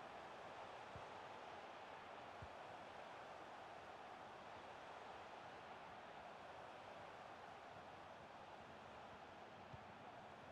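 A football is kicked with a few dull thuds.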